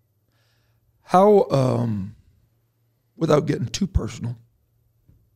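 A second man speaks with emphasis into a close microphone.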